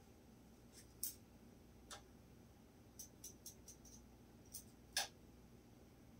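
A turntable's parts click softly as it is handled.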